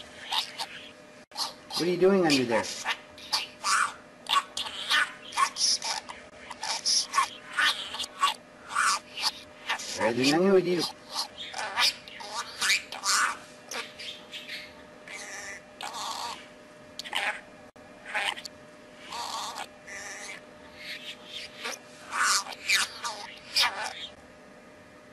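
A budgerigar chirps and chatters in quick, high bursts.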